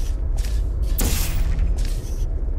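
A portal gun fires with a sharp zap.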